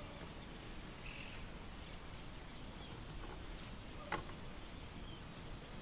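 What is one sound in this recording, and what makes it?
A wooden door knocks and rattles as it is pushed open.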